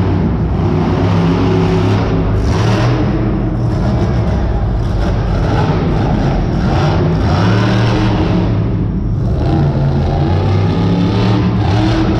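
A monster truck engine roars loudly, revving up and down, in a large echoing arena.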